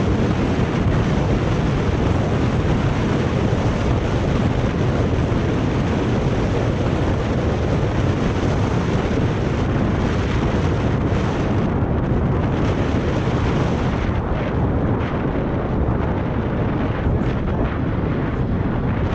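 Wind roars loudly past a moving bicycle.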